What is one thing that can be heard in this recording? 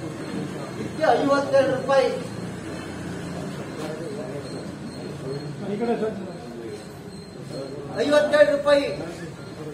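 A middle-aged man speaks loudly and with animation nearby.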